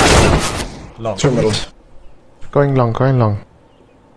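A man speaks loudly with animation into a microphone, close by.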